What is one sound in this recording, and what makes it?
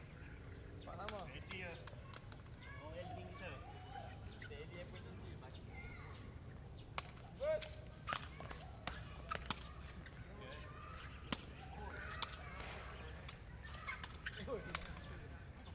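A ball is struck with sharp slaps.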